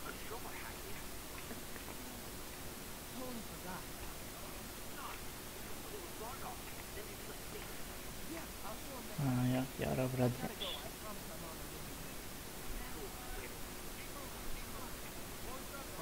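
A young man talks casually into a phone.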